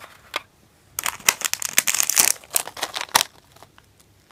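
A plastic bag of candies crinkles and rustles close by.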